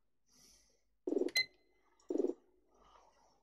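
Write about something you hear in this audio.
Menu clicks sound in quick short bursts.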